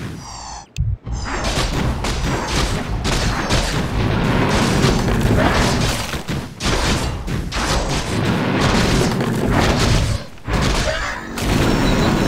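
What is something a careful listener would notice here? Weapons clash and strike rapidly in a fierce fight.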